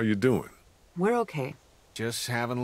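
A younger man answers calmly.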